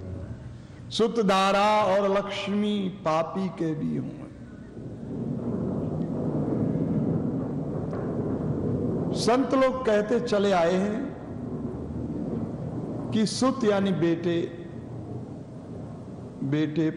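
An elderly man chants verses in a slow, melodic voice close to a microphone.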